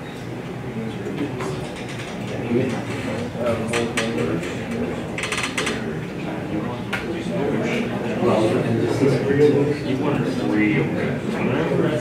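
A person talks steadily, heard from across an echoing room.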